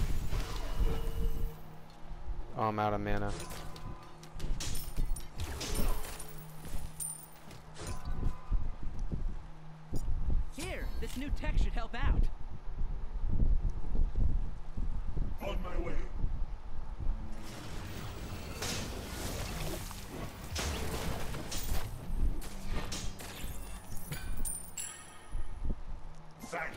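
Spell effects whoosh and crackle in bursts.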